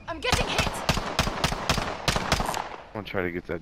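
Rapid gunshots crack in quick bursts.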